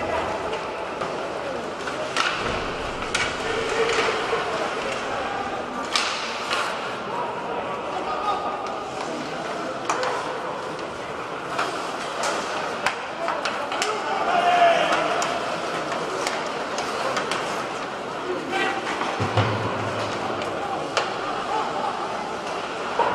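A crowd murmurs throughout a large echoing arena.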